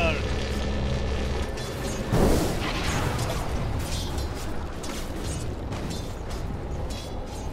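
Spells and weapons clash in a noisy game battle.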